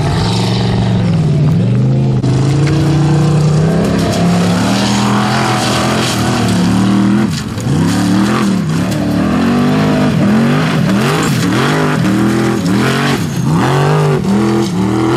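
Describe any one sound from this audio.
An off-road vehicle's engine revs hard and roars up and down close by.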